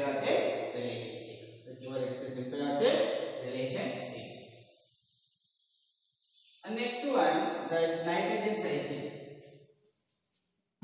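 A young man speaks calmly, explaining.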